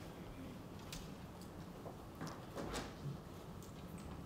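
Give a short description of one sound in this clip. Footsteps cross a stage in a large hall.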